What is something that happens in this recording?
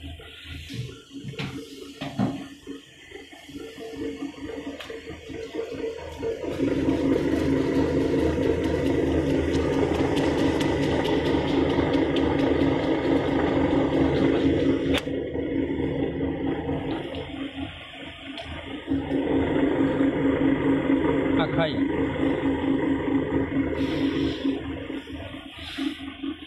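A machine motor hums steadily nearby.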